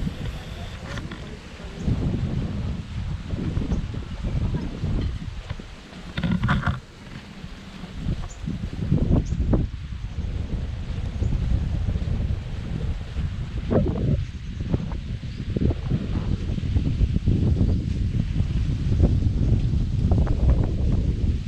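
A man talks to the microphone in a calm, casual voice.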